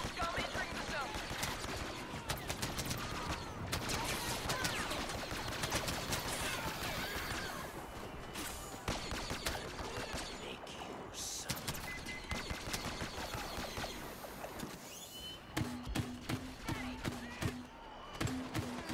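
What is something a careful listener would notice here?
Blaster rifles fire in rapid bursts.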